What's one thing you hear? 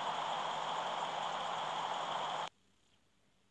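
A car engine idles.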